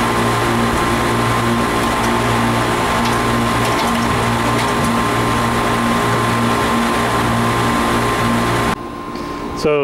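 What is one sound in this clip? Air conditioner units hum loudly and steadily outdoors.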